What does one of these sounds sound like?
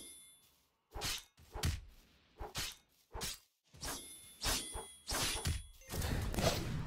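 A blade swishes through the air in quick strokes.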